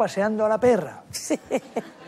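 A middle-aged man talks calmly into a microphone.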